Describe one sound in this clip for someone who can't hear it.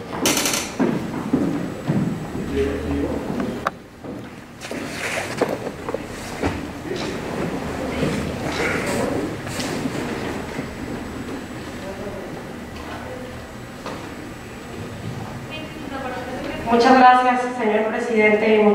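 A woman speaks calmly into a microphone in a large echoing hall.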